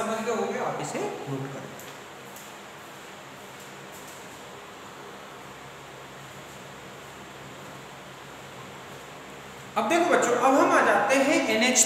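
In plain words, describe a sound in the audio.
A man speaks calmly and clearly, close to the microphone, as if explaining.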